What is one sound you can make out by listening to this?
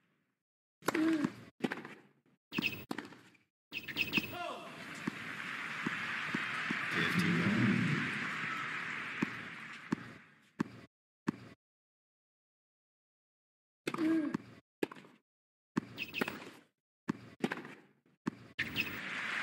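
A tennis ball is struck hard with a racket and bounces on the court.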